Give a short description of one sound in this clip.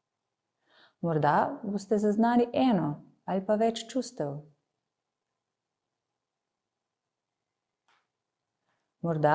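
A woman speaks calmly and clearly into a close microphone, with pauses.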